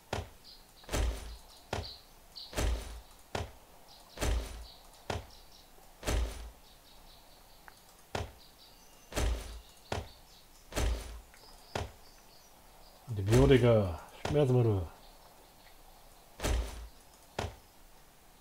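Items thud and click as they are moved in a game inventory.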